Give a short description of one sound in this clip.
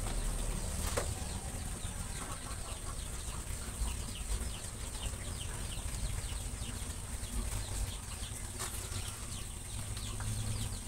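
Rabbits shuffle and scratch about in a wire cage.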